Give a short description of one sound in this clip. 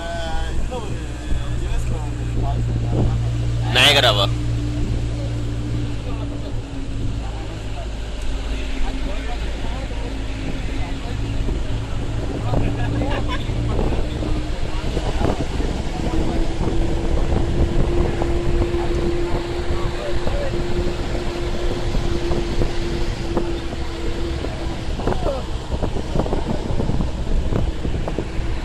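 Wind rushes past an open vehicle window.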